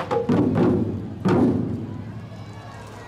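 A group of drummers strikes large drums with loud, booming hits that ring out in the open air.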